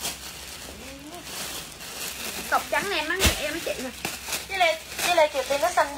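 Plastic packaging crinkles and rustles in handling.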